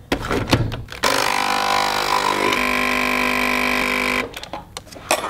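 A coffee machine hums loudly while brewing.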